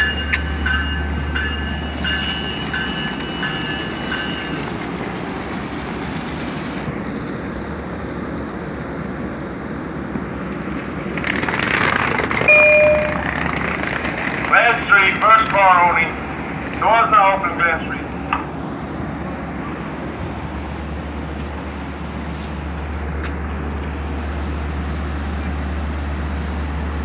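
A train's engine hums steadily nearby.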